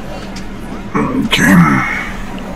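A man suddenly shouts loudly into a microphone.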